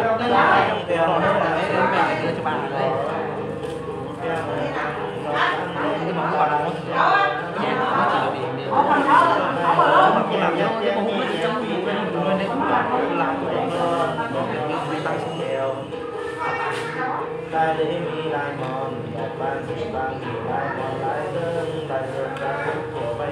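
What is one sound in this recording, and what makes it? An elderly woman talks with animation close by.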